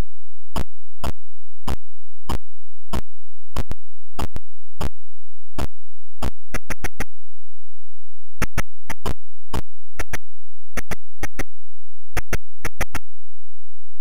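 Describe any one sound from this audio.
Sharp electronic punch sounds thud again and again.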